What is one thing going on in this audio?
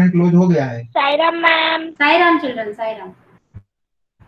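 A young boy speaks over an online call.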